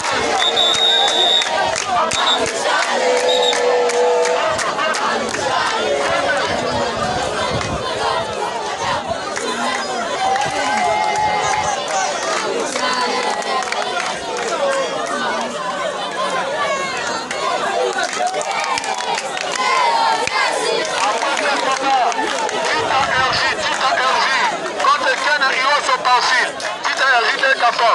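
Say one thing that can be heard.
Young men shout excitedly close by.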